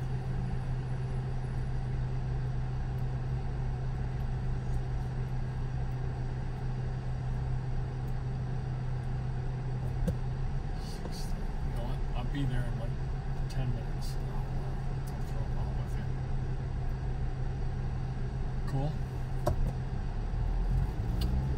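A car engine idles inside the car with a low, steady hum.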